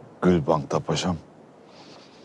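A man asks a question quietly, close by.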